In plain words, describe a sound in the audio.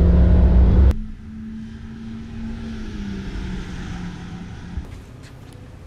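A car drives past at a distance outdoors.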